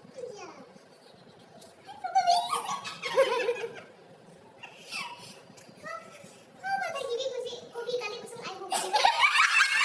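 A young woman speaks playfully close by.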